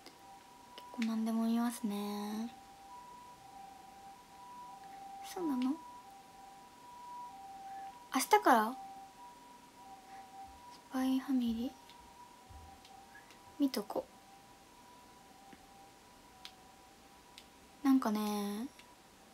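A young woman speaks in short, soft bursts close to a microphone.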